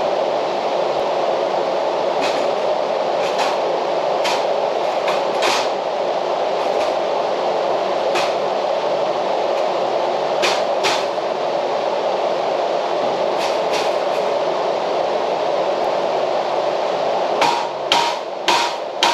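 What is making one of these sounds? A floor fan whirs steadily.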